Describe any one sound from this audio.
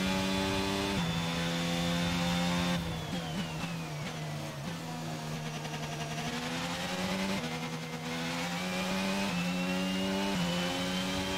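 Gears shift with quick changes in engine pitch.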